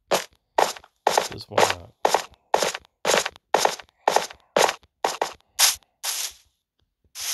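Footsteps crunch quickly on grass and stone.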